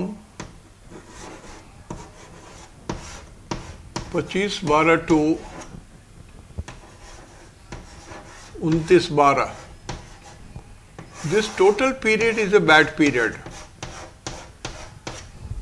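Chalk taps and scrapes on a board.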